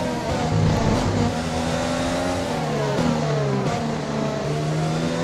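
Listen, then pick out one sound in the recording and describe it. A racing car engine drops in pitch with each quick gear change down.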